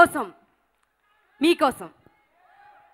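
A woman sings into a microphone, heard through loudspeakers.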